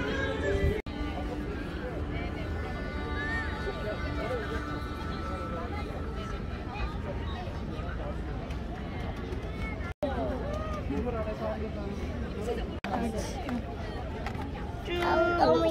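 People chatter at a distance outdoors.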